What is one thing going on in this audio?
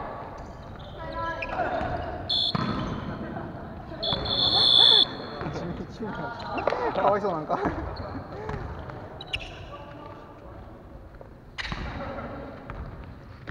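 Young men talk and call out to each other in a large echoing hall.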